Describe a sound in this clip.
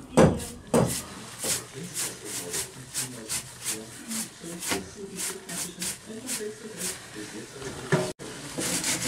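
A stiff brush scrubs quickly against wood.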